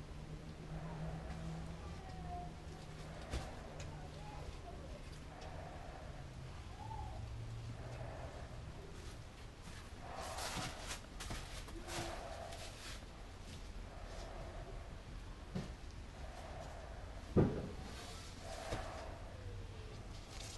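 A brush swishes softly as it spreads thick resin over a board.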